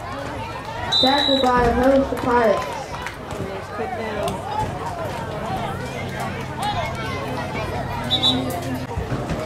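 A referee's whistle blows in short, sharp blasts.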